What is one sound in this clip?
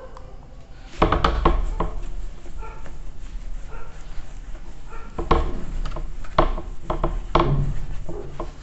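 A cloth rubs against a whiteboard, wiping it clean.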